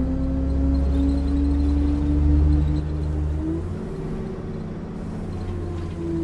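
A bus engine hums steadily and drops in pitch as the bus slows.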